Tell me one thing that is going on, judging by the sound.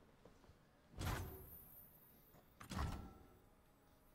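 A card game plays short whooshing effects.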